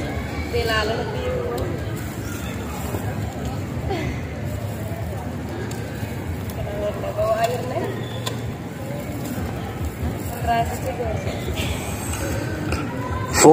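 A young man recites the Quran in a melodic chant through a microphone and loudspeakers.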